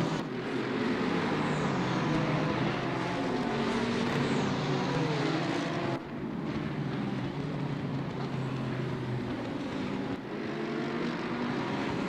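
Racing car engines roar loudly as they speed past together.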